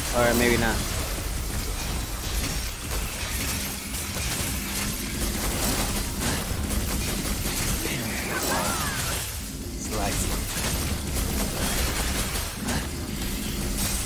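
Sword slashes and heavy impacts crash rapidly during a fight.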